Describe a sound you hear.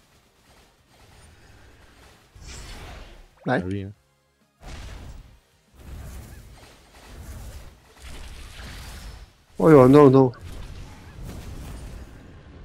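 Game spell effects burst and boom in rapid volleys.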